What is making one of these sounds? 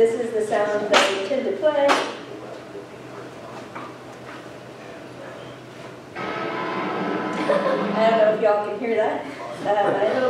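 A woman speaks calmly through a microphone in a room.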